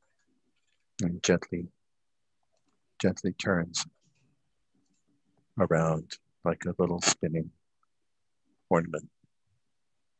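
A man speaks calmly in short phrases over an online call, with pauses between them.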